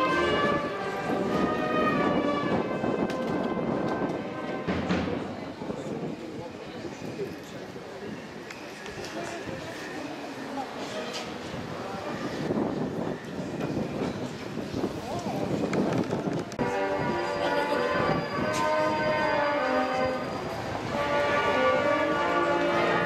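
A crowd of people murmurs and talks nearby, outdoors.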